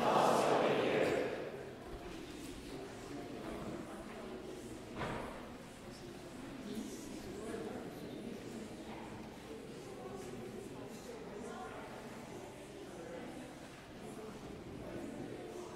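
An elderly man speaks calmly at a distance in a large echoing hall.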